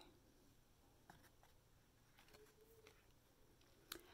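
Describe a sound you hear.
A stiff board book page turns with a soft flap.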